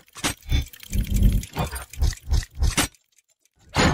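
Metal gears clatter and whir in quick bursts.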